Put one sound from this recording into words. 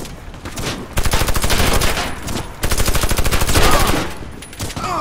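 A rifle fires in rapid bursts at close range.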